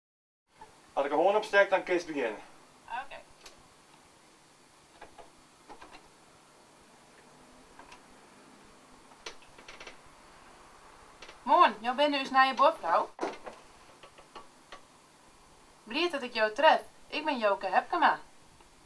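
A woman speaks clearly and calmly into a microphone, close by.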